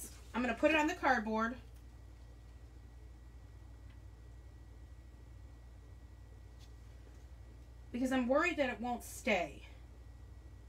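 A woman talks calmly and close by, in short bursts.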